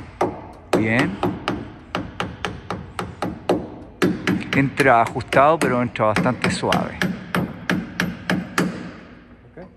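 A hammer strikes metal repeatedly with sharp, ringing blows.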